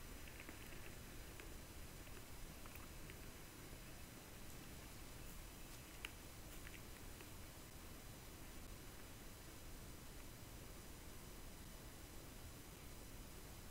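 Footsteps crunch softly through frosty grass.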